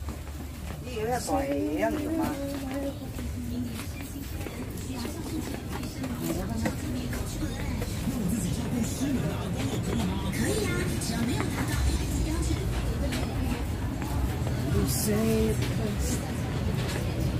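A young man talks close by in a muffled voice.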